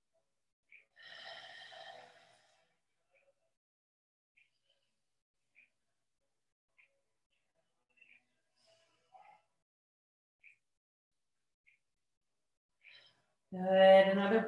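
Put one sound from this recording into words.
A woman speaks calmly and gently, close to a microphone.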